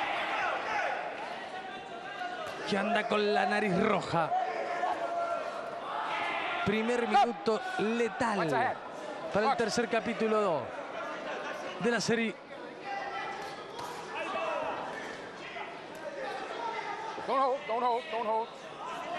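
Boxing gloves thud against a body.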